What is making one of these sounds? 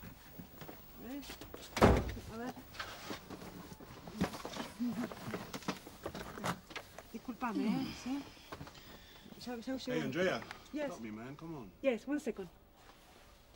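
A man speaks quietly up close.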